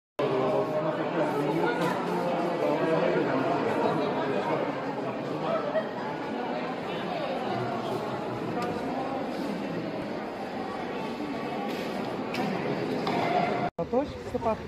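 Many young people chatter at once in a large echoing hall.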